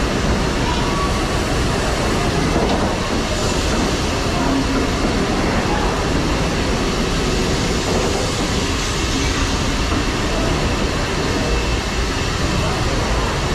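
A large engine runs with a loud, steady rumbling and clanking.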